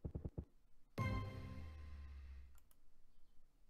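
A short electronic chime plays for a win.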